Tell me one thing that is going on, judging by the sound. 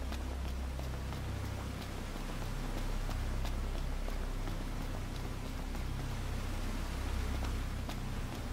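Footsteps run quickly over rocky ground.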